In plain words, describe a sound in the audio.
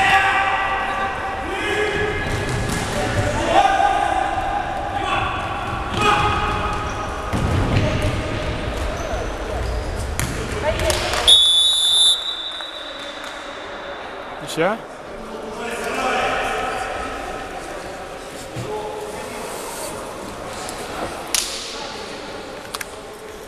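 Sneakers squeak on a hall floor.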